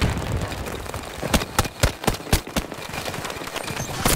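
A gun fires in quick bursts of shots.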